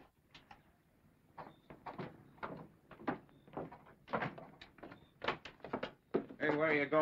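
Footsteps clatter down wooden stairs.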